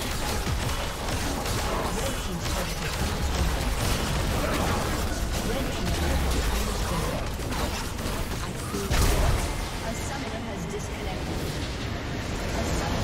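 Magic blasts crackle and explode in a hectic fight.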